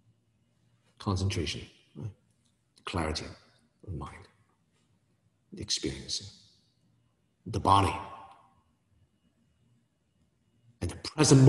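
A man speaks calmly and slowly into a nearby microphone, with pauses.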